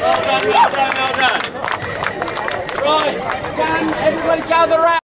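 Accordions play a lively folk tune outdoors.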